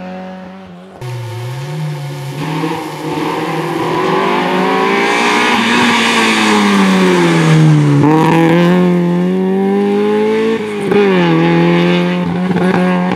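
A second rally car engine roars closer, revving up and down as the car passes close by.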